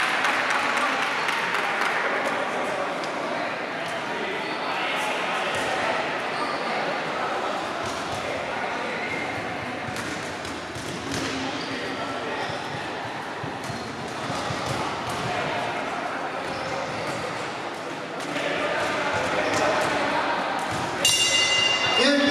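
A crowd of children and adults chatters in a large echoing hall.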